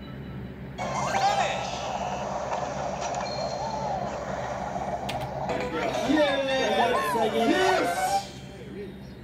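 Tinny game music plays from a small handheld speaker.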